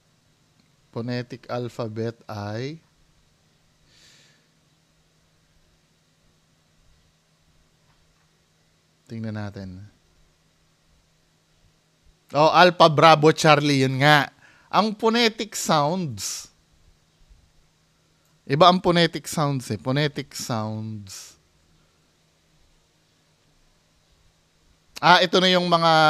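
A man speaks close to a microphone, in short bursts with pauses.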